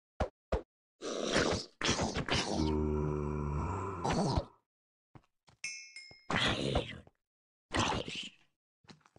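A zombie groans low and hoarsely.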